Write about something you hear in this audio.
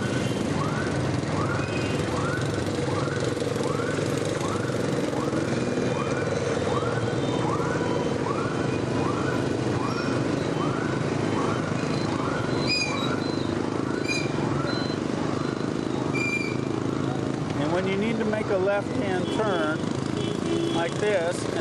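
Scooters and cars rumble past nearby.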